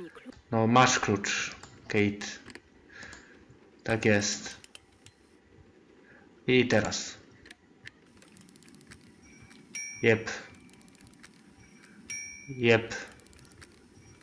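A small desk bell is struck again and again, ringing out each time.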